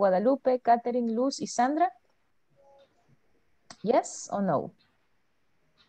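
A young woman speaks with animation over an online call.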